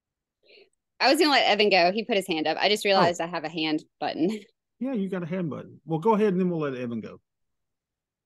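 A woman speaks cheerfully over an online call.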